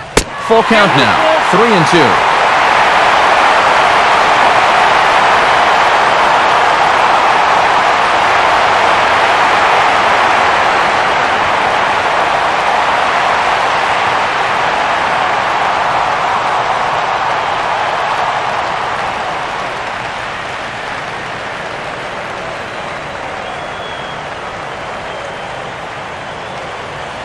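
A large stadium crowd cheers loudly and steadily, then slowly quiets.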